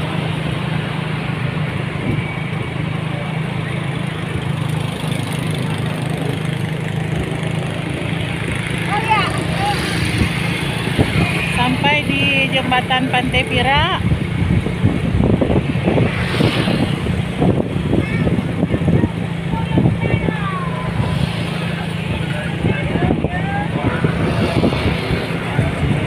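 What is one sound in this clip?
Passing motorbikes and cars whoosh by on a road outdoors.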